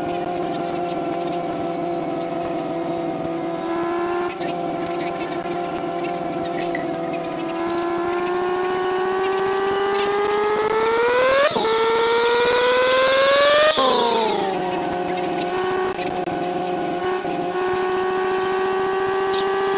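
A car engine hums steadily, revving higher as the car speeds up and dropping after gear changes.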